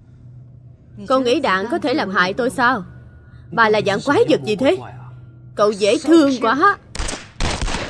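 A woman speaks calmly and mockingly nearby.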